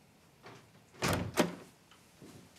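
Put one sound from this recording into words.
A door opens with a click.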